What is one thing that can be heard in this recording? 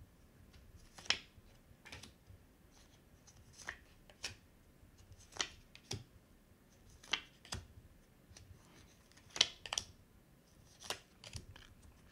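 Playing cards are laid down one by one with soft taps.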